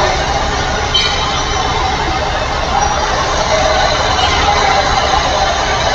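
A truck engine drones steadily as it drives along a highway.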